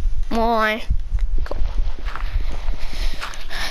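Dirt crunches in quick, repeated scrapes as it is dug away.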